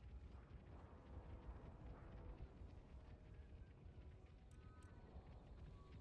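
Muskets fire in rough volleys in the distance.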